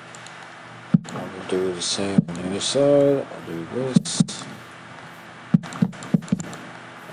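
Wooden blocks are set down with short knocks.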